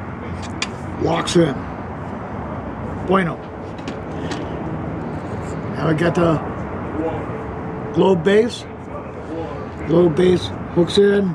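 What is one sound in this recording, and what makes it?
An elderly man speaks calmly and close by, explaining in short bursts.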